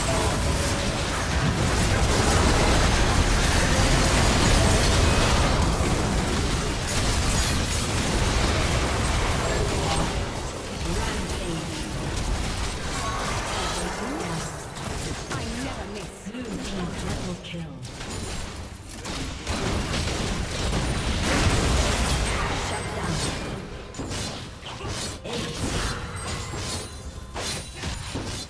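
Spell blasts and explosions crackle and boom from a battle in a game.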